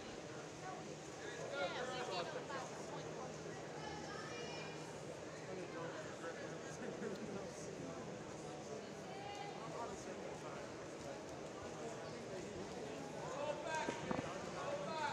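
Voices and noise echo steadily through a large indoor pool hall.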